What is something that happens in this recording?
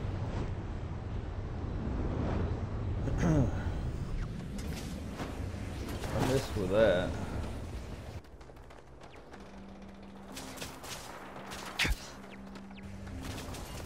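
Heavy boots thud on a hard floor.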